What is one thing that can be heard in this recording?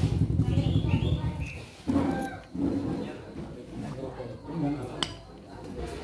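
A middle-aged man talks close to the microphone with his mouth full.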